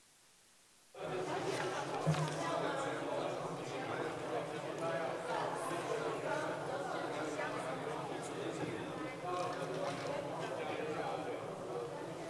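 Many men and women chatter at once in a large echoing hall.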